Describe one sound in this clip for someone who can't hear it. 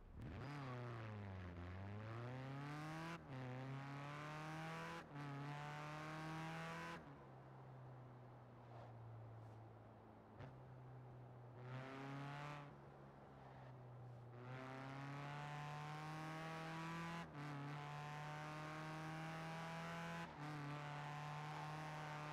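A racing engine revs hard, rising in pitch and dropping briefly with each gear change.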